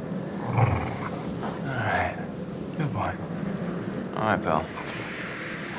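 A wolf snarls and growls.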